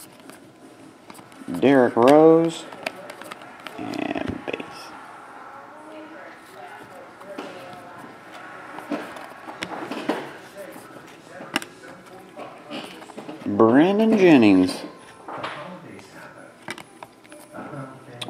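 Trading cards rustle and flick as they are shuffled through by hand.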